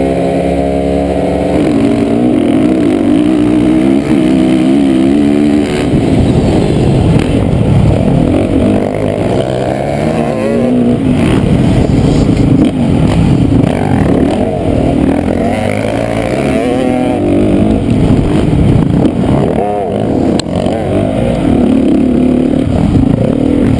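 Other dirt bike engines buzz nearby.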